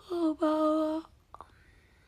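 A young woman lets out a short, high-pitched vocal sound close by.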